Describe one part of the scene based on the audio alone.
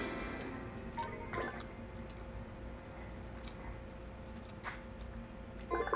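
A video game plays short electronic chimes through a television speaker.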